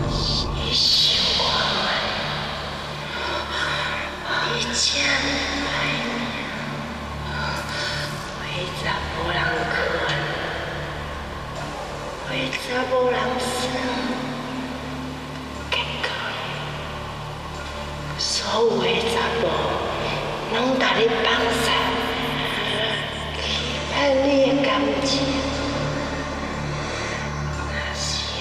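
A young woman speaks close by in a low, taunting voice.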